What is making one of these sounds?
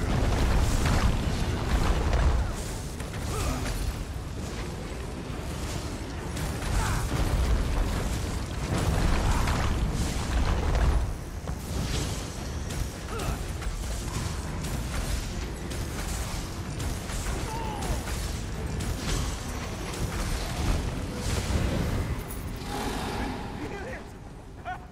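Magic spells crackle and boom in a game battle.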